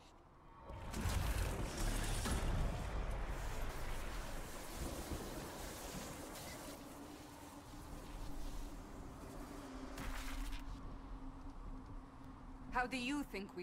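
A deep, rushing roar swells and slowly fades.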